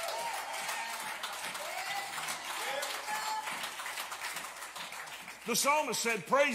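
A crowd of people call out and praise together in a room.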